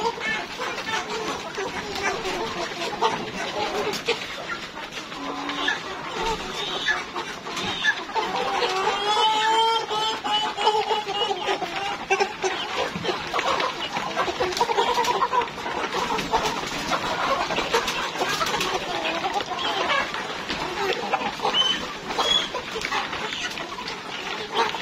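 Many hens cluck and squawk close by.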